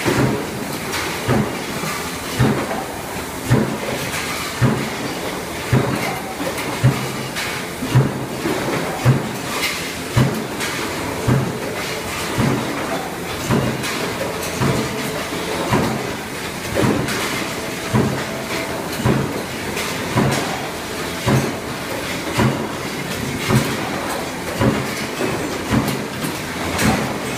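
Roll-forming machines hum and rattle steadily.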